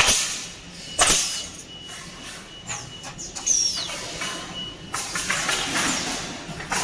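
A woodworking machine clanks and knocks loudly in a large echoing hall.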